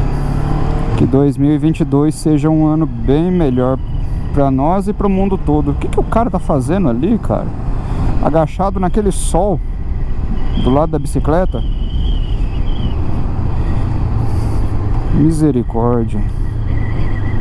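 A motorcycle engine revs up and down through the gears.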